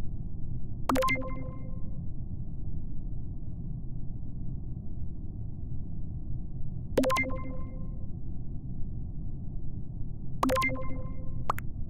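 A bright electronic chime rings out, three times.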